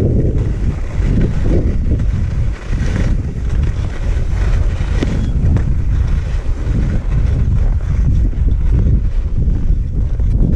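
Skis hiss and scrape over snow, slowing down.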